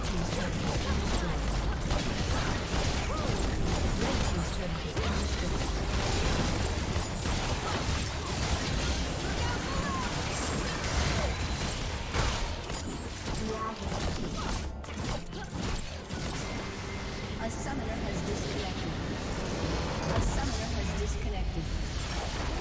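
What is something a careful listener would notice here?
Spell blasts, clashing blows and explosions burst rapidly in a busy game battle.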